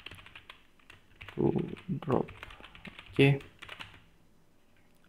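Keyboard keys click rapidly as someone types.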